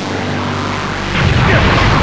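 A large energy blast hums and rumbles loudly.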